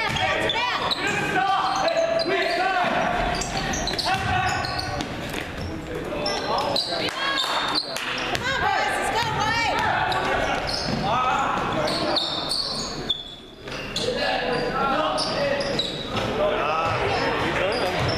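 Young men shout to each other across an echoing gym.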